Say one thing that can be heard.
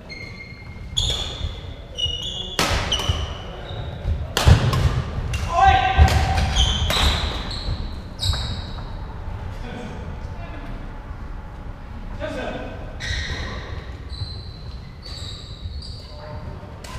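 Badminton rackets hit a shuttlecock with sharp pops in a large echoing hall.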